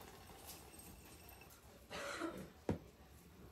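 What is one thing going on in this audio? Chopped nuts pour and rattle into a bowl.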